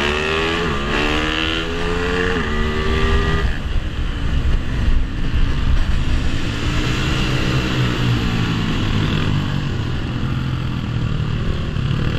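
Other motorcycles whine as they pass nearby.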